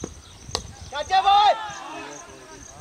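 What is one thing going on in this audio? Men shout loudly across an open field.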